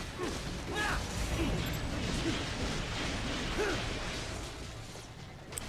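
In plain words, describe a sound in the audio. Metal blades clash and slash rapidly.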